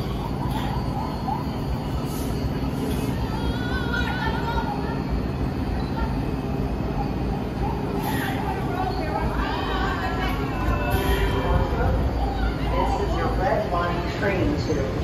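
A subway train rumbles along the tracks and slows to a stop.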